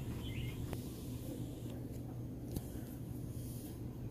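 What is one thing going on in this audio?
A pocketknife blade clicks open.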